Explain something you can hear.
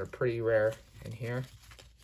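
Trading cards riffle and slap together in someone's hands.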